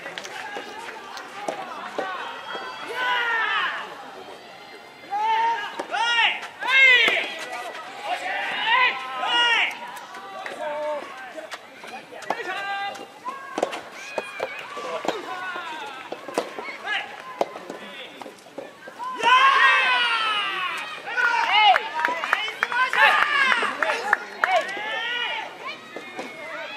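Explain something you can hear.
A crowd of young spectators shouts and cheers in bursts outdoors.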